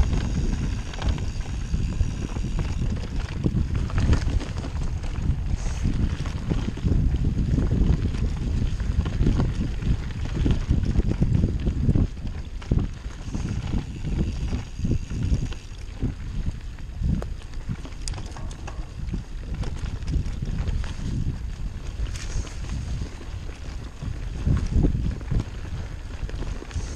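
Wind buffets loudly past the rider.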